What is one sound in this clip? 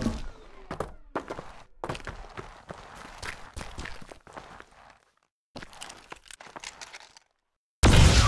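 Footsteps crunch over loose gravel.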